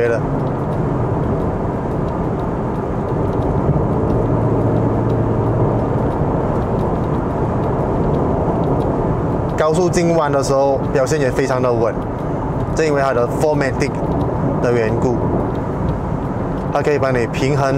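Tyres roar steadily on a road, heard from inside a moving car.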